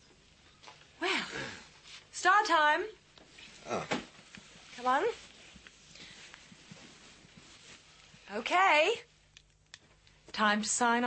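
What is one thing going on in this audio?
A woman speaks in a conversational tone, close by.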